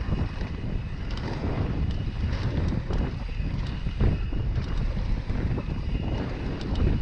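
Wind rumbles steadily across the microphone.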